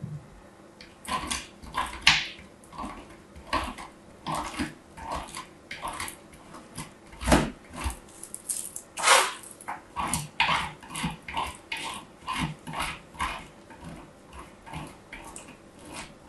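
Soap is scraped against a metal grater in short crisp strokes, close by.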